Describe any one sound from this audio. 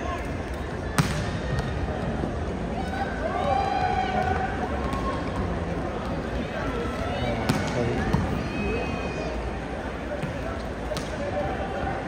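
Volleyballs thump sharply as players hit them.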